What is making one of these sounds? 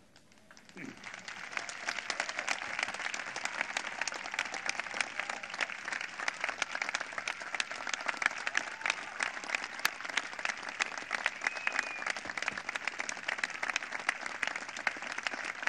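A large crowd applauds steadily outdoors.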